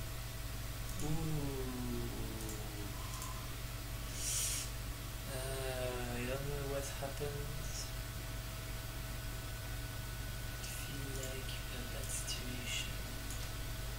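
A man speaks calmly close to a microphone, in short bursts.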